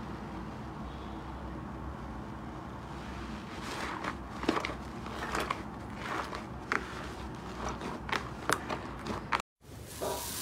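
Soft fluffy slime squishes and crackles as hands knead it.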